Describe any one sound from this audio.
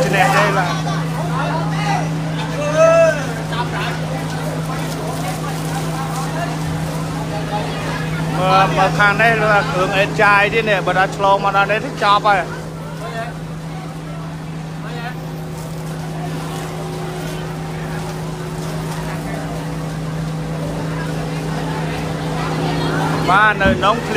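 Water sprays hard from a hose.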